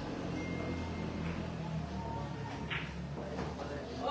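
Pool balls click together as a shot is struck.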